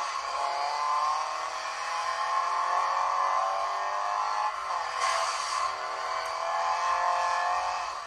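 A rally car engine revs high and shifts gears.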